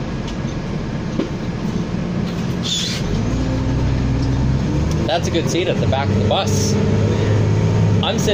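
A bus rattles and creaks over the road.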